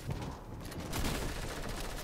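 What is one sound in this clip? Gunshots fire in a video game.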